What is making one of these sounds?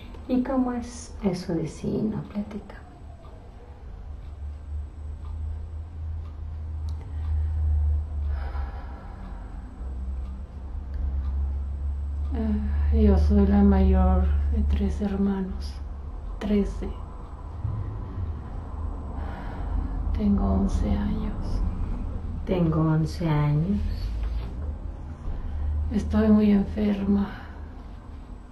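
A middle-aged woman speaks calmly close by, in short phrases with pauses.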